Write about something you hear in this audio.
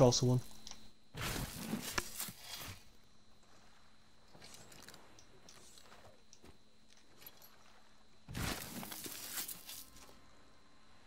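A shovel digs into sand with soft scraping thuds.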